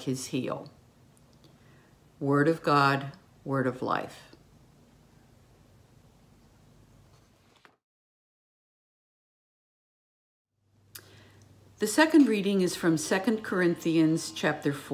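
An elderly woman speaks calmly and close up, as if into a microphone.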